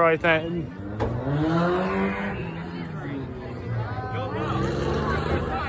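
Race car engines roar and rev along a track.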